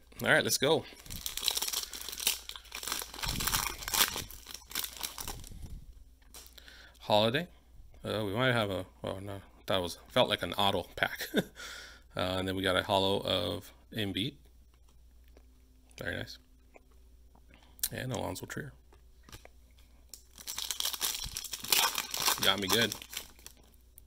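A foil wrapper crinkles and tears as a pack is opened.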